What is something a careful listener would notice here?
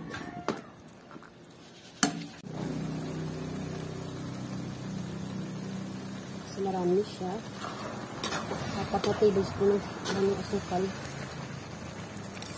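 A metal spoon stirs thick food and scrapes against a metal wok.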